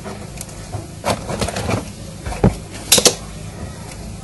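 Objects knock and clatter close by.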